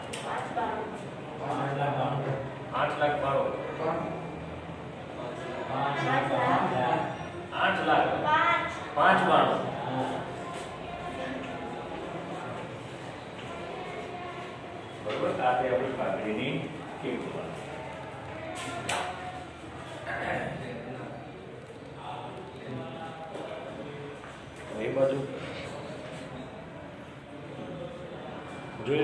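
A man speaks calmly nearby in a slightly echoing room.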